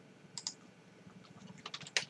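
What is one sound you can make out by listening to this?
Fingers tap on a keyboard.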